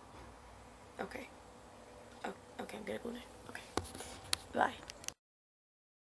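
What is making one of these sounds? A young woman speaks quietly and close to the microphone.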